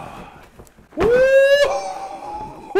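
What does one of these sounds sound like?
A young man lets out a long, rising excited cry.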